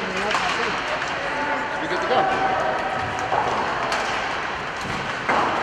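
Ice skates scrape and glide across the ice in an echoing arena.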